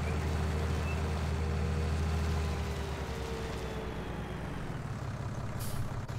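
A tractor engine hums steadily, then slows and fades.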